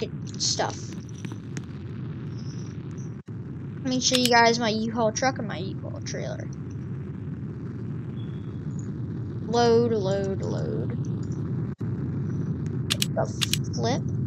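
A boy talks with animation into a headset microphone, close by.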